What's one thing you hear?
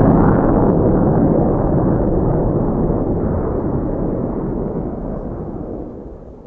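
A twin-engine turbojet fighter jet roars overhead and fades as it climbs away.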